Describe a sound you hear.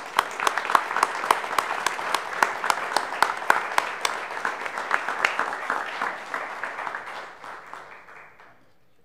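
A group claps in applause, which fades out near the end.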